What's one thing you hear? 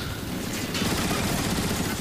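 A heavy turret gun fires with a buzzing blast.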